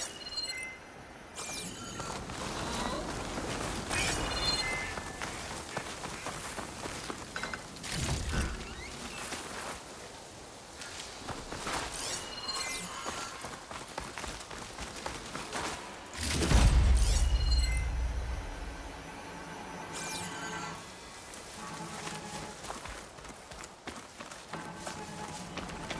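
Footsteps rustle through dense leafy plants.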